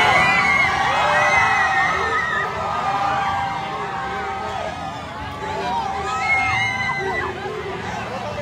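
A large crowd outdoors cheers and shouts loudly.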